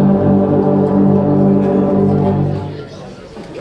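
A brass band holds a loud final chord, then stops.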